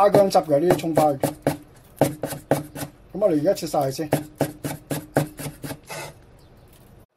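A cleaver chops quickly on a wooden board.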